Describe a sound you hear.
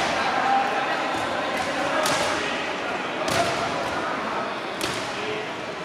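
Boxing gloves thump against pads.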